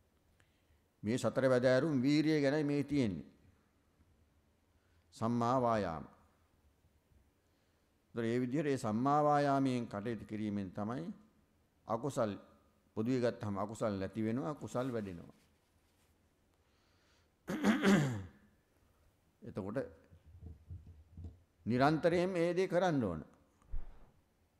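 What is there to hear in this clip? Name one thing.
A middle-aged man speaks slowly and calmly into a microphone, with pauses.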